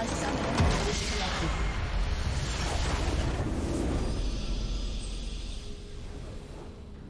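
A huge magical explosion booms and crackles, then fades.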